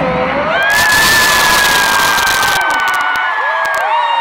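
Fireworks crackle and pop overhead.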